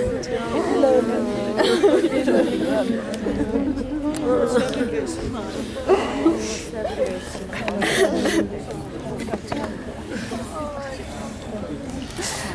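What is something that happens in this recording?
An elderly woman wails and sobs loudly nearby.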